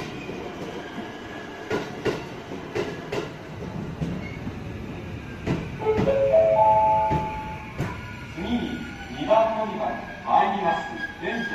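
A train pulls away, its wheels clacking over rail joints.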